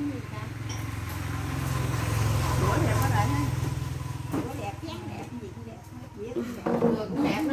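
Several women talk and chat nearby.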